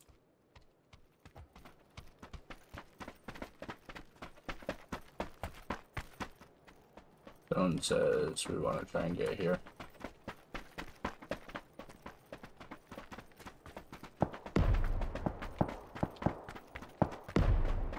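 Footsteps crunch quickly over rocky ground.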